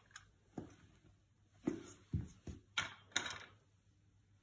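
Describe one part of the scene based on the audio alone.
A plastic lamp bracket knocks and clatters against a hard floor.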